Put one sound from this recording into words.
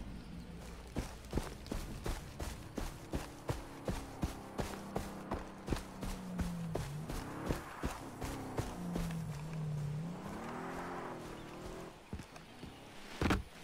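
Footsteps tread steadily on grass at a walking pace.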